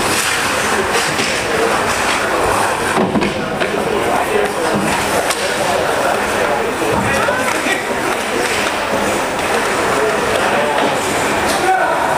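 Hockey sticks clack against the puck and the ice.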